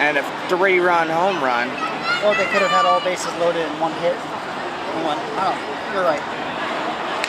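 Spectators nearby talk and call out loudly.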